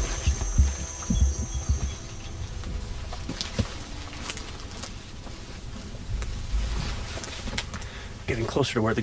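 Leaves and branches rustle as people push through dense undergrowth.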